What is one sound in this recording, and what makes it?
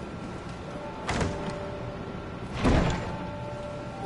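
A wooden chest lid creaks open and thuds.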